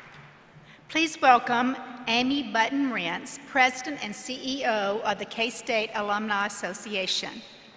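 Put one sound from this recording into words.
An elderly woman speaks calmly through a microphone in a large hall.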